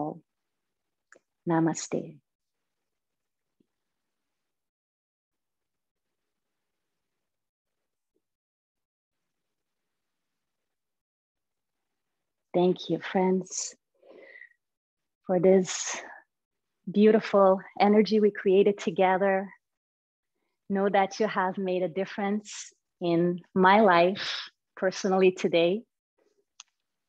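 A woman speaks calmly and softly into a close microphone, heard as if over an online call.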